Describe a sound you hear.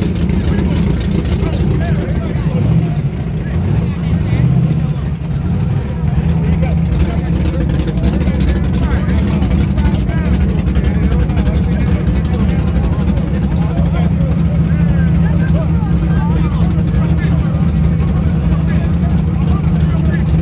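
A crowd of people talks outdoors in the background.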